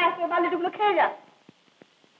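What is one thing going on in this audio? A boy speaks briefly outdoors.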